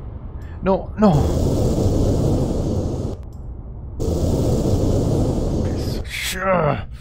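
An explosion roars loudly.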